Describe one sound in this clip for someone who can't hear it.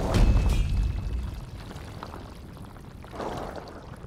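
A fireball roars and crackles.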